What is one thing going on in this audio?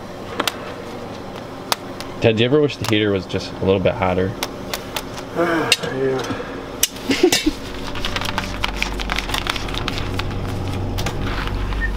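Plastic pieces click and tap against a metal surface.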